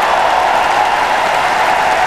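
Women shout and cheer excitedly.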